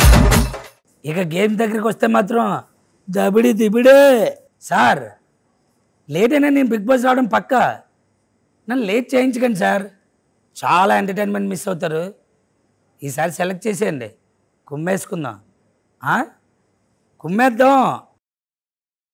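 A man speaks calmly and closely in short phrases.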